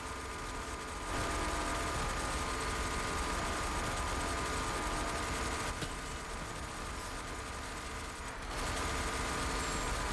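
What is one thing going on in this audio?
Heavy gunfire blasts in rapid bursts.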